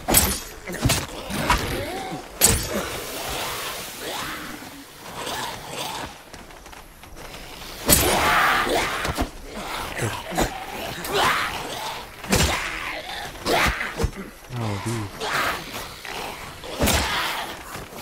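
Heavy weapon blows thud and clang repeatedly.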